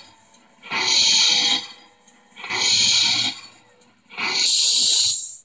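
A model steamboat's whistle blows in three long, loud blasts.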